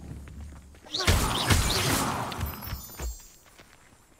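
A magical burst shimmers and whooshes.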